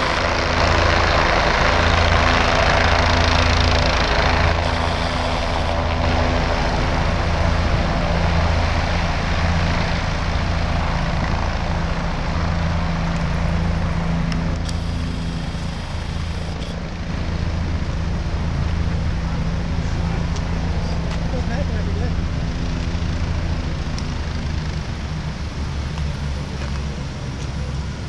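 A helicopter's rotor thumps loudly as it hovers and lifts off close by.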